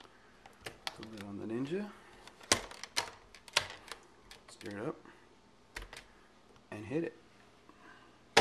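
Hard plastic parts click and knock as they are handled.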